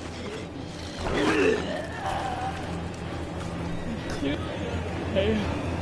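A man howls loudly, close by.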